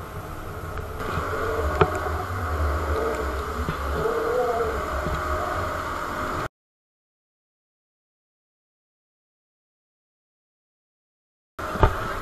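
Water rushes and splashes below.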